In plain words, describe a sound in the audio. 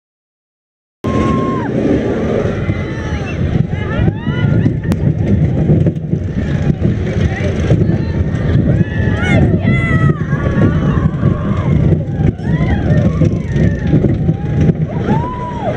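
Roller coaster wheels squeal on the rails.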